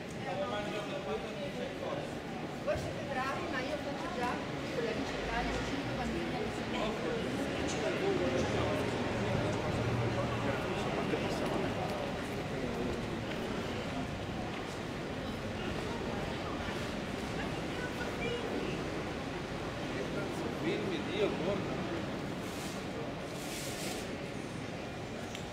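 Voices of men and women murmur outdoors nearby.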